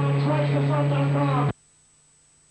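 A band plays loud music through amplifiers, then cuts off abruptly.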